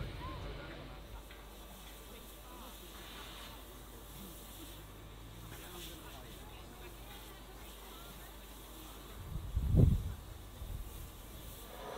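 A steam locomotive rolls slowly into a station.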